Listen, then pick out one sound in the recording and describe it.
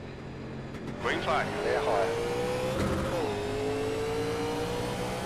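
A race car engine roars and revs up hard, rising in pitch.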